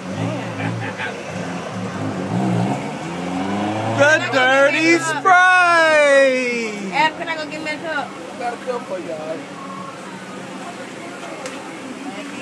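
A young man talks and exclaims loudly close by.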